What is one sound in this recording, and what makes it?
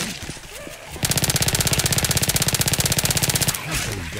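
A gun fires in a rapid burst.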